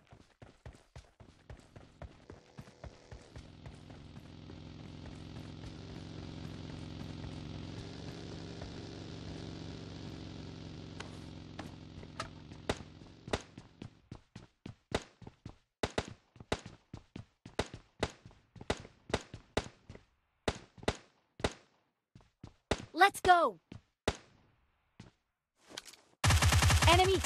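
Quick footsteps run on a hard floor.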